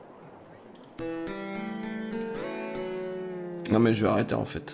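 A lute plays a short tune.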